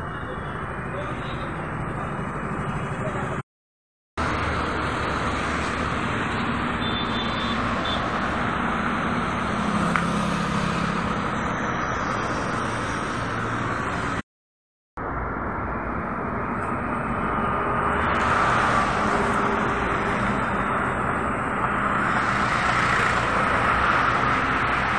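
Traffic roars past steadily on a busy road.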